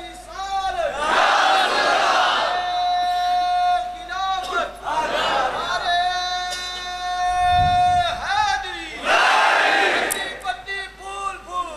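A crowd of men shouts together in response.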